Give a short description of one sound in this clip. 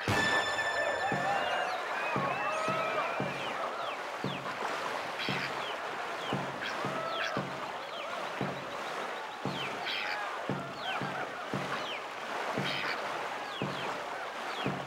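A paddle splashes through water in a quick, steady rhythm.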